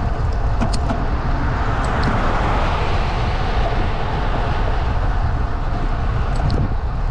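A car drives past and fades away.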